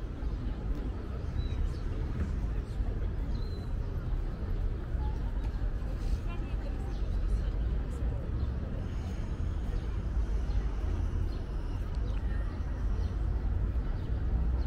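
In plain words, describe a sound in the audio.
Distant crowd murmur fills an open square.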